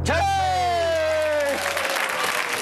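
A young man shouts with joy close by.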